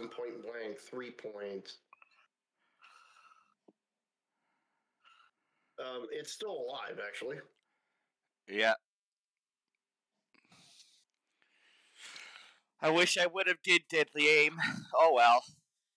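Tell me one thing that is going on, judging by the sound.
A man talks casually into a close microphone, with pauses.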